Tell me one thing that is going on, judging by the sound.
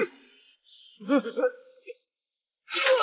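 A young man speaks in a frightened, trembling voice.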